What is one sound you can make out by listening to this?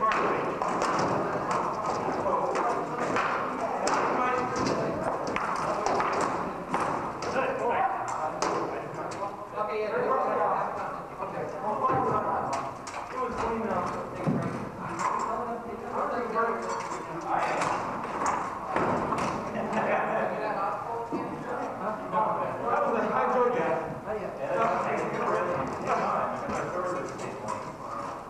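A crowd of men and women talk and call out in a large echoing hall.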